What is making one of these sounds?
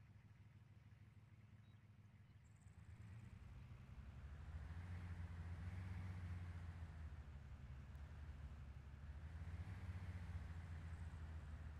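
A vehicle engine rumbles steadily, growing louder as it drives.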